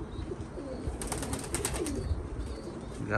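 A pigeon's wings flap loudly as it takes off and flies.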